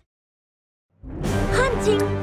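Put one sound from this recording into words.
A victory fanfare plays.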